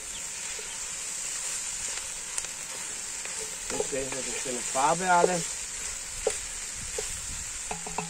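A wooden spoon scrapes and stirs food in a metal pot.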